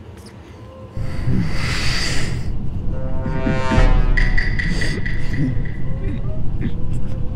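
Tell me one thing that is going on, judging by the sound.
A game's dramatic reveal sound swells and rings out.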